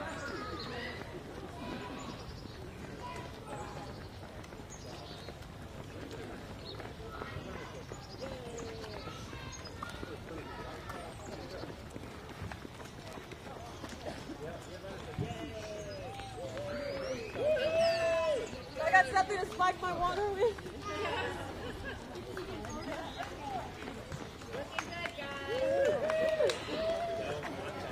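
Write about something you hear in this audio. Footsteps of runners patter on pavement.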